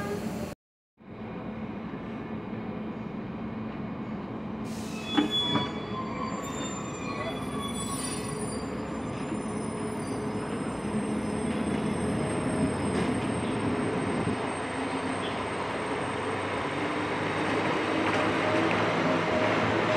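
A train rolls slowly along the tracks, its rumble growing steadily louder.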